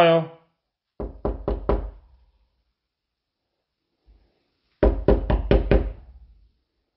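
A fist knocks on a wooden door in quick bursts.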